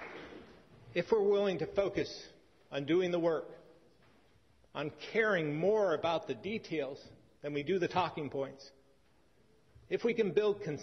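A man speaks formally into a microphone.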